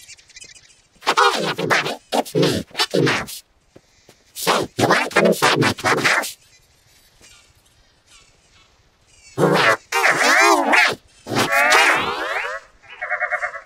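A man speaks in a high, squeaky cartoon voice with lively, warped echoes.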